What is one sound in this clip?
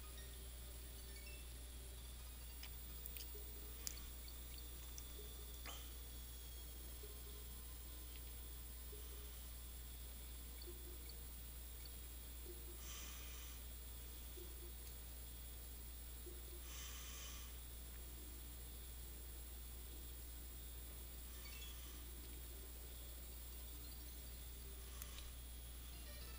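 Soft underwater game music plays steadily.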